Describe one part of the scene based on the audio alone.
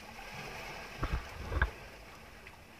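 A large fish thrashes and splashes at the water's surface close by.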